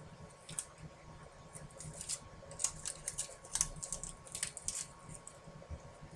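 Tape crackles as it is pulled from a roll.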